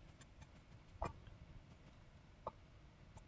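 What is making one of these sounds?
A wooden chest creaks open and shut.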